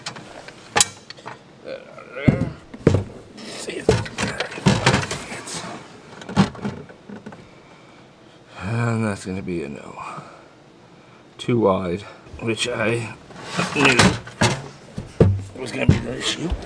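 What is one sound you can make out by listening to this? A heavy box knocks and scrapes against metal as it is moved.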